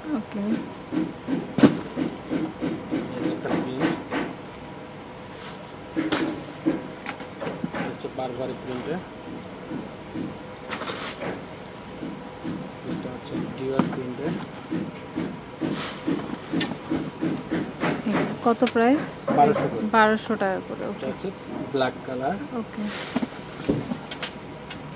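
Handbags rustle and knock as they are handled.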